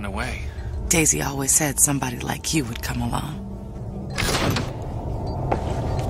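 A woman speaks warmly nearby.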